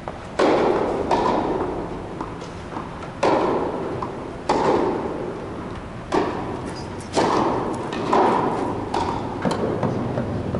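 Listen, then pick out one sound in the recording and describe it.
Tennis balls are struck with rackets and ring out in a large echoing hall.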